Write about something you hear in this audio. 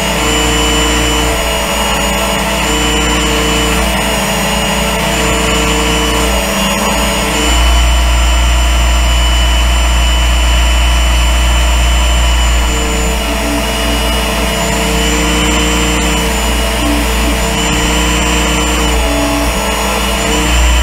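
A small electric sharpener motor hums with a steady high whine.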